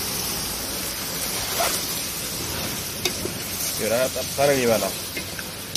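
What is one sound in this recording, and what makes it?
A wooden spoon stirs and scrapes inside a metal pot.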